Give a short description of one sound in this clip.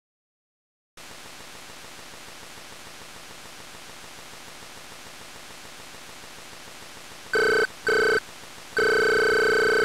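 A retro video game plays a steady low electronic hum.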